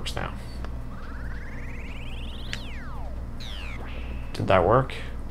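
An electronic beam sound rises in pitch and zaps.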